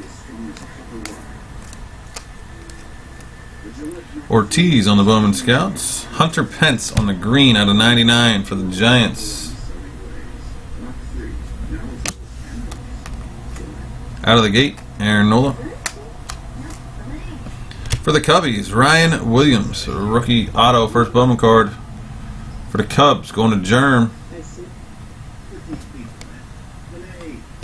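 Trading cards rustle and slide against each other in a person's hands.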